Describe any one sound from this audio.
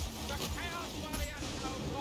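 A blade strikes flesh with heavy thuds.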